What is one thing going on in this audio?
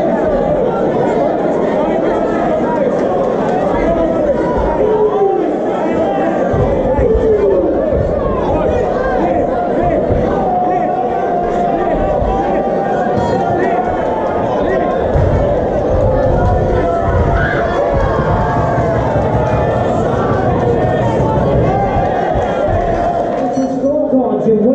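A crowd cheers and shouts loudly in a large hall.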